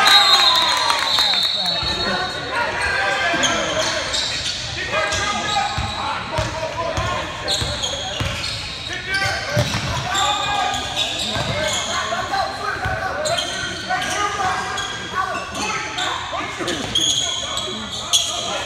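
A basketball bounces with dull thumps on a wooden court.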